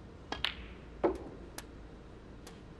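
Snooker balls click against each other.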